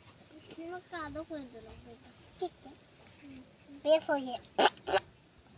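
A child speaks close by with animation.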